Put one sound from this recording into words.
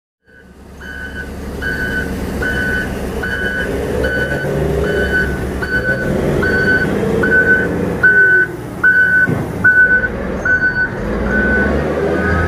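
Water sprays from a truck with a steady hiss.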